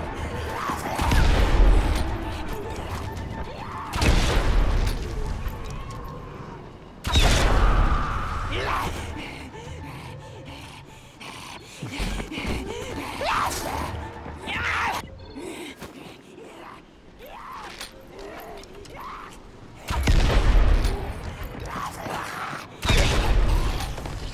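A crossbow fires with a loud thump.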